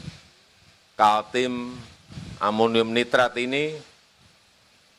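A man speaks calmly and formally into a microphone, with short pauses.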